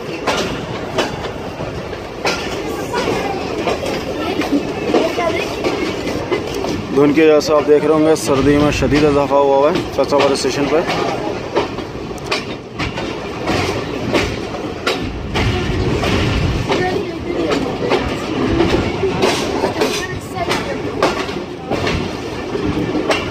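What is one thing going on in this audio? A train rolls slowly along the track, its wheels clacking over the rail joints.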